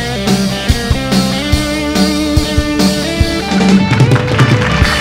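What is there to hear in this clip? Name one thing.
A band plays music.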